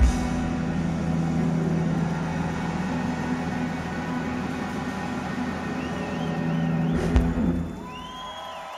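A rock band plays loudly through big speakers in a large echoing hall.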